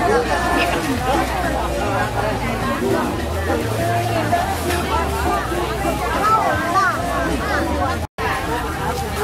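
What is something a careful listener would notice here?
A crowd of men and women chatter together outdoors.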